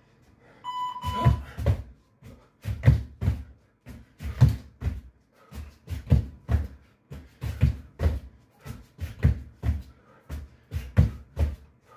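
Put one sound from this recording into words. Feet and hands thump on a floor in a steady rhythm.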